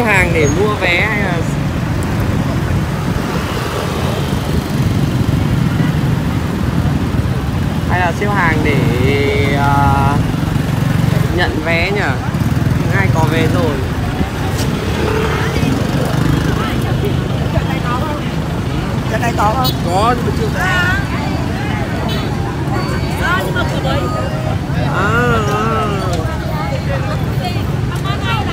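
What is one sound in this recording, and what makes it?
Traffic roars steadily along a busy road.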